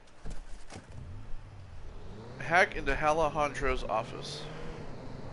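A car engine starts and idles with a low hum.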